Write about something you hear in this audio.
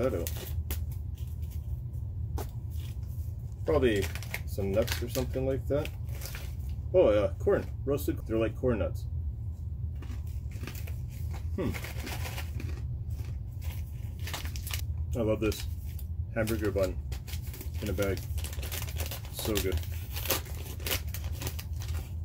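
A wrapper crinkles and rustles in hands.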